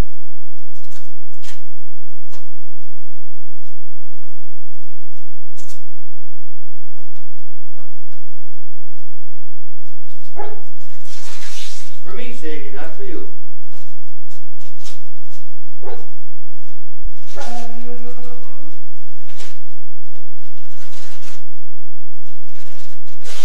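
Wrapping paper rustles and crinkles as a gift is unwrapped.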